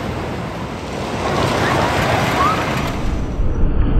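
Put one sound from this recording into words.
Riders scream on a roller coaster.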